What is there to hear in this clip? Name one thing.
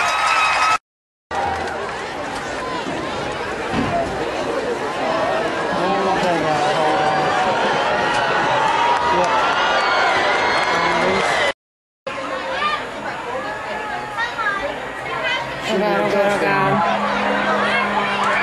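A crowd cheers and shouts loudly in a stadium.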